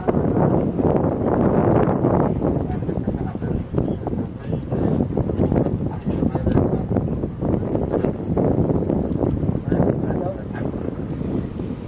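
Water splashes and laps as swimmers move against an inflatable raft.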